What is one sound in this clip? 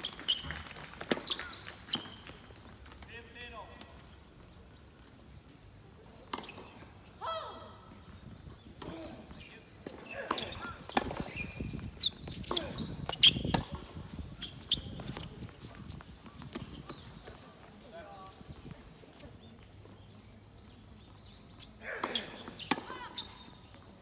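Tennis rackets strike a ball back and forth outdoors.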